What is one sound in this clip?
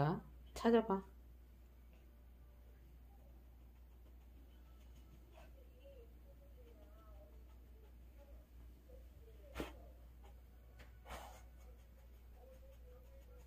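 A small dog sniffs and snuffles close by.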